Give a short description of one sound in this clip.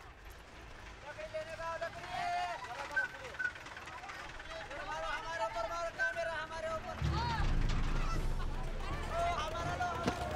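Children shout and call out loudly outdoors.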